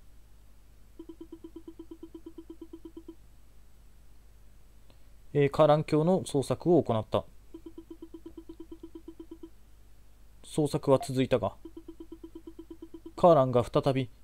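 Rapid soft beeps tick in quick runs as text types out.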